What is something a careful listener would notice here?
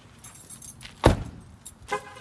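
A truck door slams shut.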